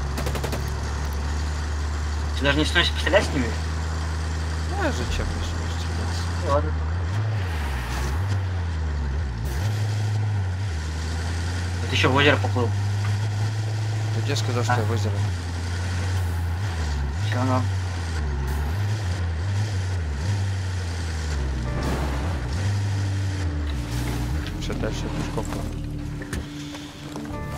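A truck engine drones steadily, rising and falling in pitch as it drives.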